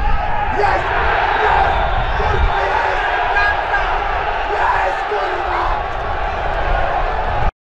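A stadium crowd cheers and shouts outdoors.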